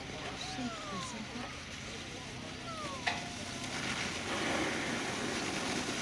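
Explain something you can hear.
A sled slides and scrapes over packed snow.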